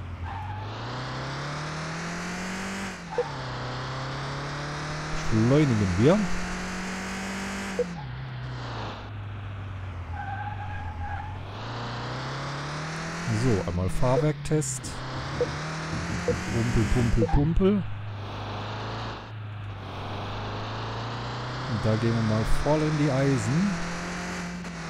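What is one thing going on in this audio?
A car engine revs up and drops as gears change, heard from inside the car.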